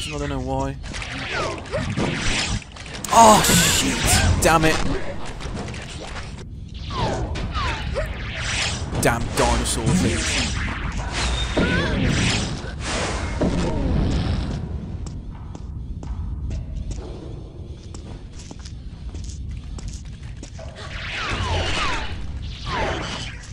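A game's plasma gun fires zapping blasts.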